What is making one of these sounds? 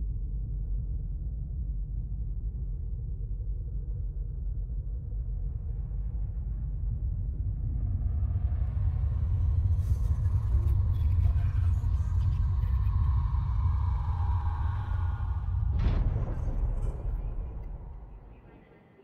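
A deep low rumble swells steadily.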